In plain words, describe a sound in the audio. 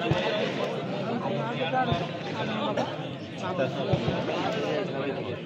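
A crowd of men talks and calls out nearby.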